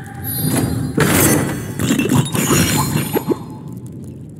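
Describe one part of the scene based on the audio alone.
Coins clink and scatter in quick bursts.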